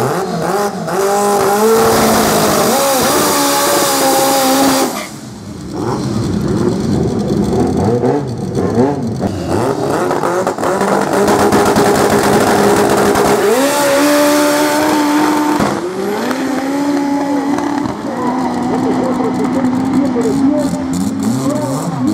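A car engine revs loudly at high pitch.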